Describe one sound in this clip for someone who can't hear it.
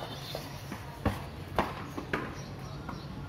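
A cricket bat strikes a ball with sharp knocks.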